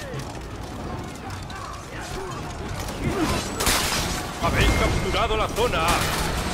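A crowd of warriors shout battle cries.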